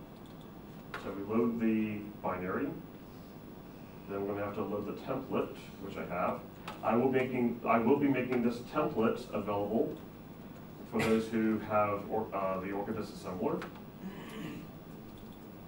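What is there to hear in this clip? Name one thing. A man speaks calmly to a group in a large room, heard from across the room.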